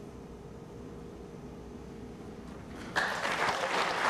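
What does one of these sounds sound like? A violin plays a held note, ending the piece.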